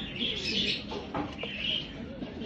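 A pigeon flaps its wings briefly.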